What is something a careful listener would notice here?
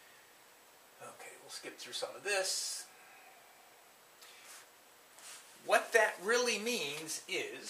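An older man lectures calmly, close by.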